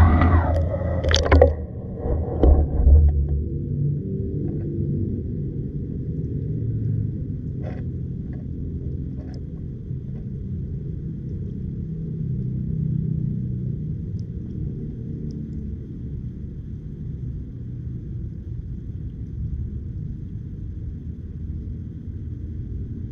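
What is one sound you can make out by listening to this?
Water rumbles in a low, muffled murmur underwater.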